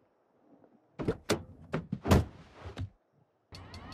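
Knocks and thumps sound as a man climbs into a helicopter seat.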